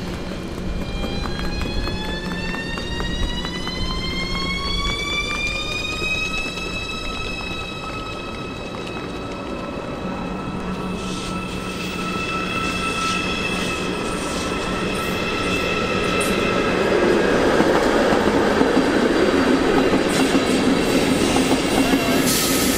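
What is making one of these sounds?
A train's wheels rumble and clatter on the rails, growing louder as it passes close by.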